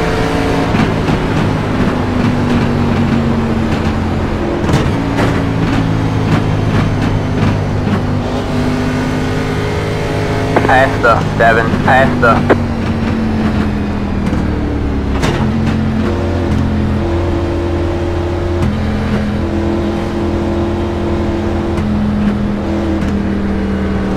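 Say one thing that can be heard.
A race car engine drones steadily and shifts in pitch.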